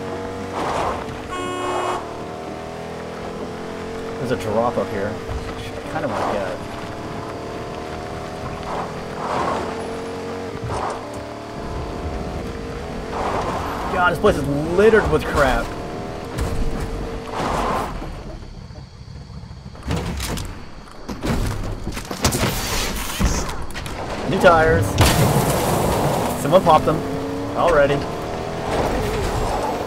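A truck engine hums and revs.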